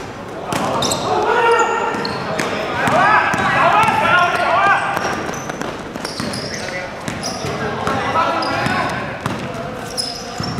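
A basketball bounces on the floor in an echoing hall.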